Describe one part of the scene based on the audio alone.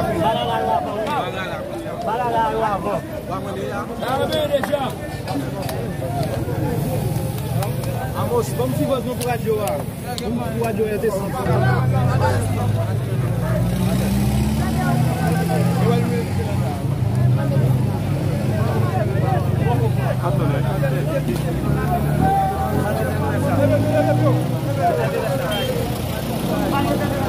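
A crowd of men sings and chants loudly outdoors.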